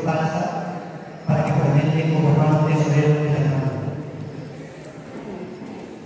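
A man prays aloud in a steady chant through a microphone and loudspeaker, echoing in a large hall.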